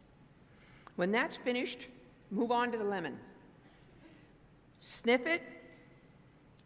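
An elderly woman speaks into a microphone.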